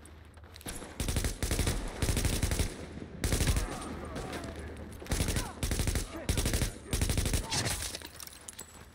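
Rifle gunfire rattles in loud rapid bursts.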